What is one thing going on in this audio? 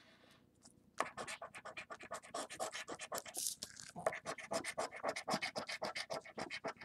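A coin scratches rapidly across a card.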